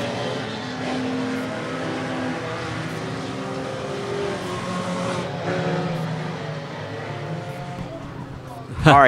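Race car engines roar and drone as cars circle a track.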